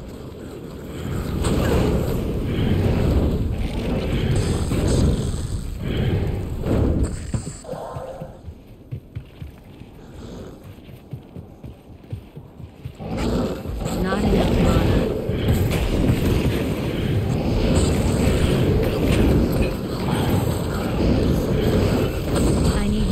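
Magic spells crackle and burst in quick succession.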